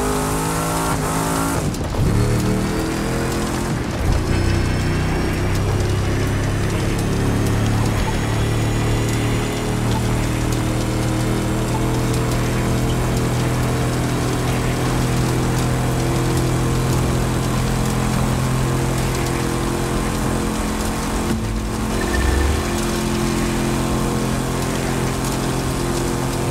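A sports car engine roars at high revs, shifting up through the gears.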